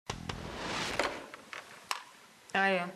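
A phone handset clatters as it is lifted from its base.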